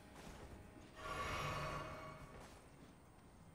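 A flask is drunk with a glowing burst.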